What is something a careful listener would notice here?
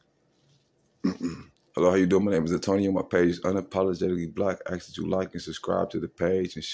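A middle-aged man speaks calmly and close to a phone microphone.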